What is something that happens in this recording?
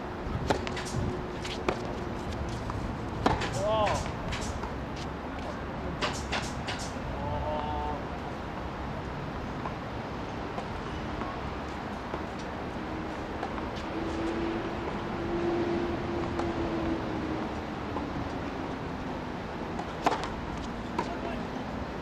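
Tennis balls are struck with rackets, with sharp pops outdoors.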